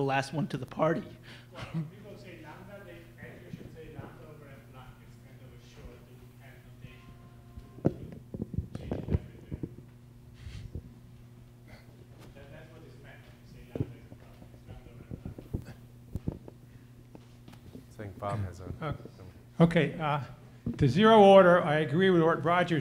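A middle-aged man speaks calmly through a microphone in a large echoing hall.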